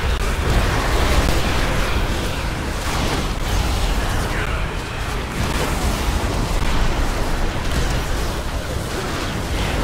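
Spell effects and weapon strikes clash in a video game battle.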